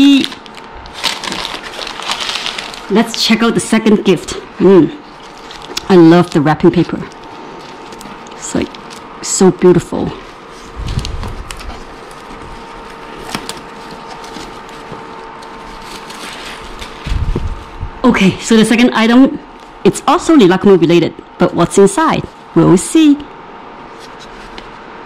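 Plastic wrapping crinkles and rustles as hands handle it.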